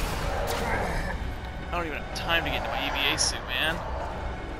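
Game combat sounds crash and flare with booming impacts.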